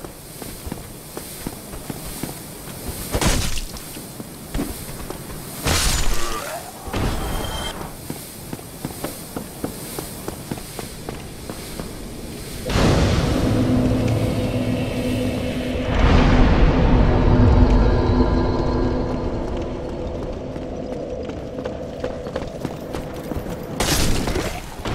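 Bare feet patter quickly on stone.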